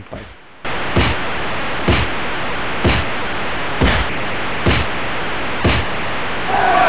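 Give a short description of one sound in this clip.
Punches land with dull thuds at a steady beat.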